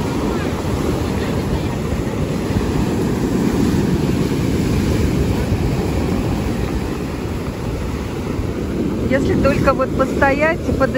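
Waves crash and wash over a pebble beach.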